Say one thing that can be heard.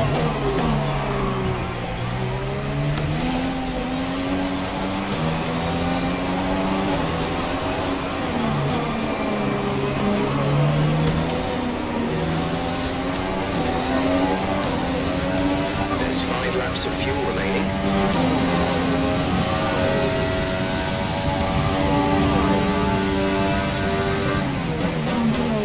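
A racing car engine roars and whines, rising and falling in pitch as the car speeds up, shifts gears and brakes.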